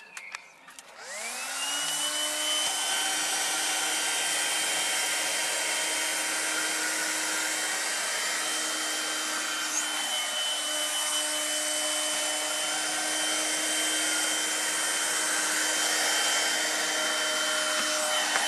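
A battery-powered window vacuum starts up and whirs as it is drawn over glass.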